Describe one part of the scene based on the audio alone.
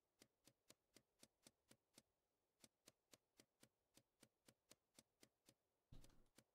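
Light footsteps tap quickly and evenly on stone.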